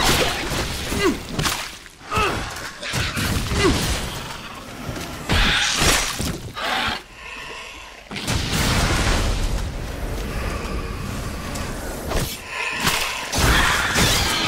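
Blades slash and thud into flesh with wet splatters.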